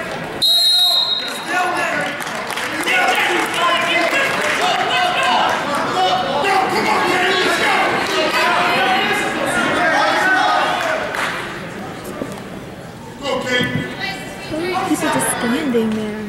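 A crowd cheers and chatters loudly in an echoing gym.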